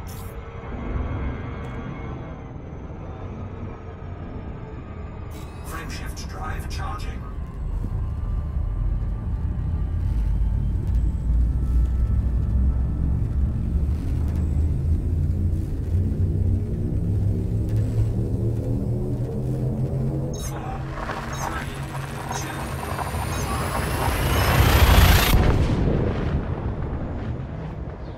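A spaceship engine hums with a deep, steady drone that slowly swells.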